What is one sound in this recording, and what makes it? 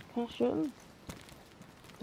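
Footsteps run on hard pavement.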